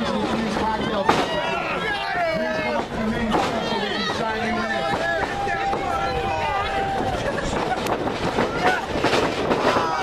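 Wrestlers' blows land with sharp smacks.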